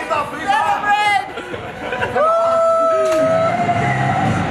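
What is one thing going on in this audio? A woman shouts and cheers excitedly close by.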